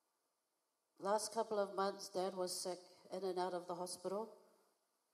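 A young woman speaks calmly into a microphone, heard through a loudspeaker in a large hall.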